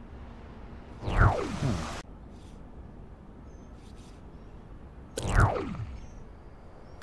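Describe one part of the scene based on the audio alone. A game menu opens and closes with a sweeping, falling whoosh.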